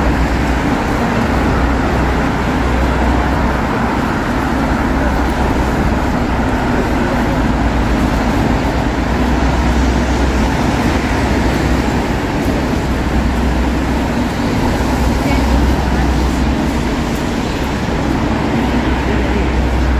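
Light rain patters steadily on wet pavement.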